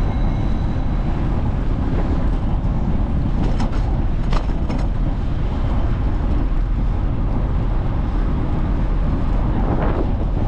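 Cars drive by on the street.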